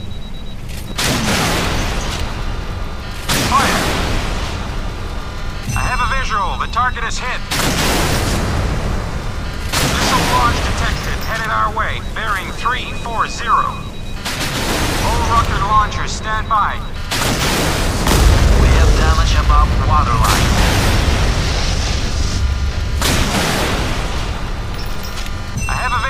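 Heavy naval guns boom in repeated blasts.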